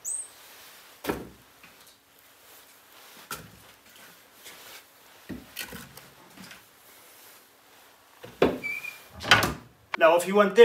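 Wood knocks and thuds as logs are placed into a stove.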